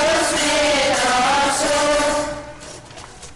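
A children's choir sings loudly in a large echoing hall.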